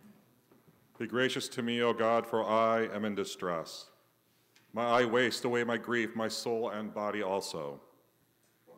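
A middle-aged man speaks calmly through a microphone in an echoing room.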